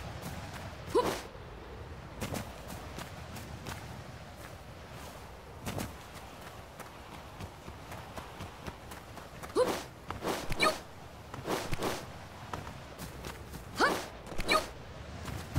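Light thuds sound as a climber jumps and grabs onto rock ledges.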